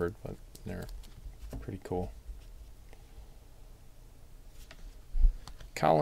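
Trading cards flick and rustle between fingers.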